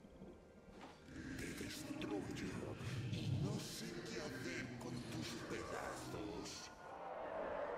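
Sharp game sound effects of blows and spells strike in quick succession.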